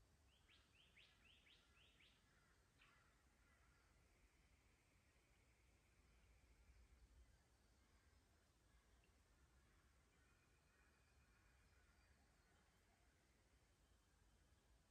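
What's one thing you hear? A light breeze blows outdoors.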